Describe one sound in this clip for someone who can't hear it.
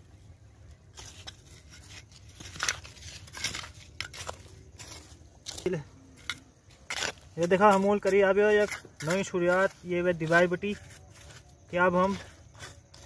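A small trowel scrapes and taps in dry soil.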